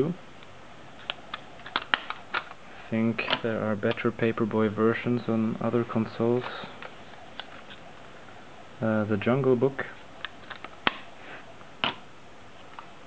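Plastic cases click and clack as they are handled and set down.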